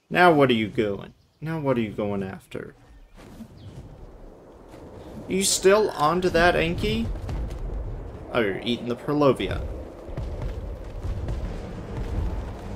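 A large winged creature flaps its wings in flight.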